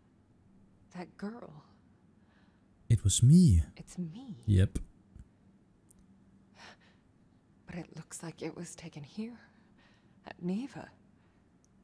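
A young woman speaks quietly and thoughtfully, close by.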